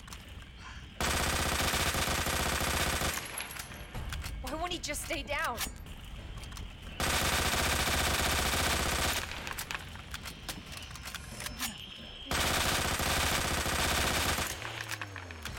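A shotgun fires loudly in an echoing hall.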